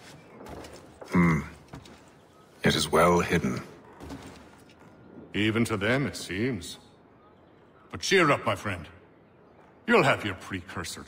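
Another man answers with animation.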